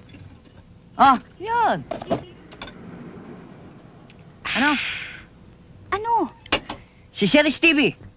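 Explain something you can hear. A young woman talks loudly and excitedly.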